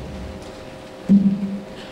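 A tuba plays a short low note.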